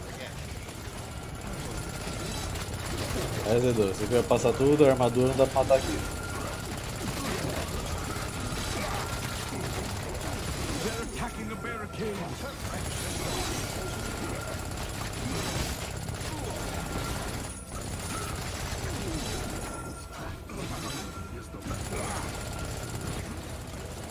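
Game weapons fire and explode with blasts and clashes.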